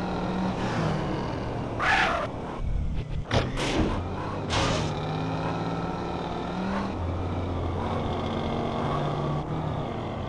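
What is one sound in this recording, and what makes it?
A car engine hums steadily as a car drives.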